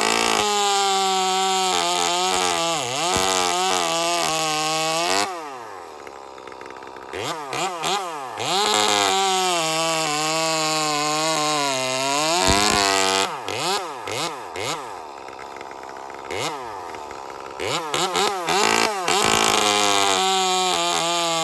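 A chainsaw engine roars close by, revving up and dropping to idle again and again.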